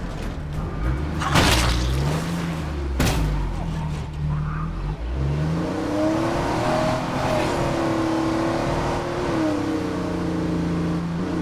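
A heavy van's engine drones and revs as it drives.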